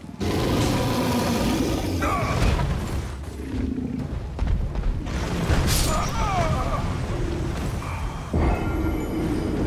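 A huge beast growls and roars.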